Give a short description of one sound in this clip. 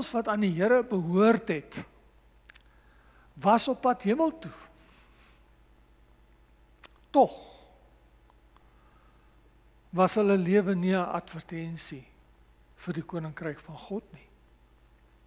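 A man preaches through a microphone in measured phrases with pauses.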